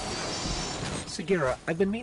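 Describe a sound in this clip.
A beam weapon fires with a crackling roar.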